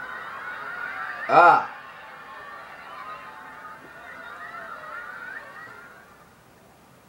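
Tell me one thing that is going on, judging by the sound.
Video game music plays through a television speaker.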